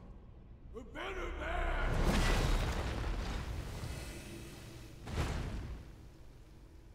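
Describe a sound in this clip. A monster roars deeply and loudly.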